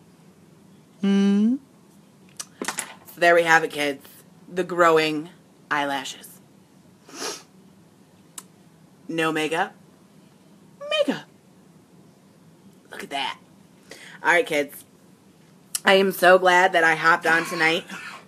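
A woman speaks close up with animation, in short bursts with pauses.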